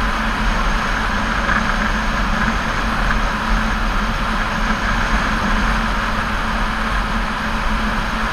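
A motorcycle engine hums steadily while cruising.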